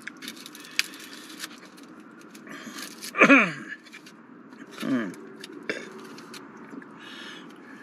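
Paper rustles softly in a man's hands.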